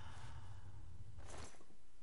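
A creature snarls close by.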